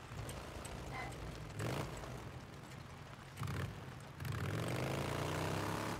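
A motorcycle engine rumbles steadily, revving up now and then.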